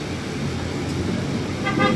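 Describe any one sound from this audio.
A minivan drives past on a street.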